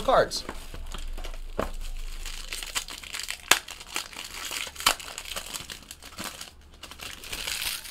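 Cardboard scrapes and taps as a box is opened.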